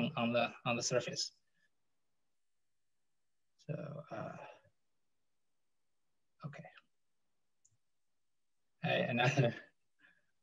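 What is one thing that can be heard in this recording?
A young man speaks calmly in short bursts with pauses, heard through an online call microphone.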